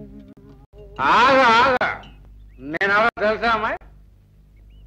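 A man speaks cheerfully, close by.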